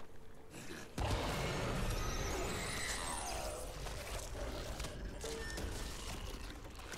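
Gunshots and thuds of a fight ring out.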